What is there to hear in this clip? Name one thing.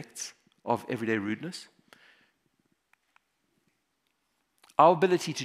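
A man speaks into a microphone in a large hall, pausing between phrases.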